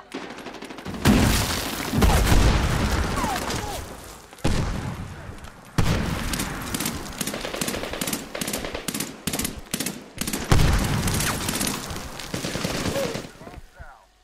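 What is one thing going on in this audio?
Heavy explosions boom close by, with rumbling echoes.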